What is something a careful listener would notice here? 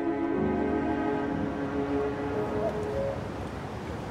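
Musicians play music.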